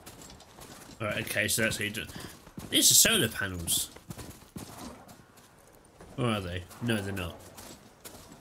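A young man talks casually, close to a headset microphone.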